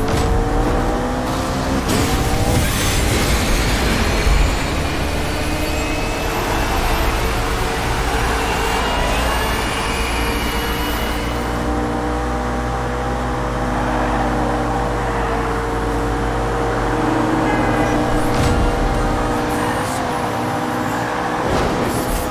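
Tyres hiss and whoosh on the road at speed.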